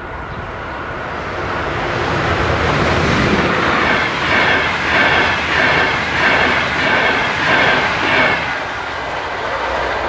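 A train rushes past at speed, wheels clattering rhythmically over the rails.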